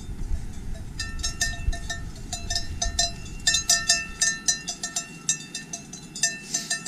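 A cowbell clanks close by as a cow walks.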